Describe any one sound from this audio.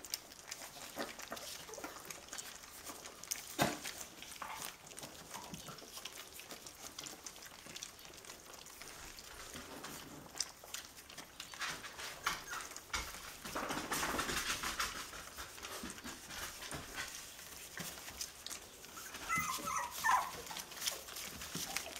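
Puppies lap and chew food from metal bowls.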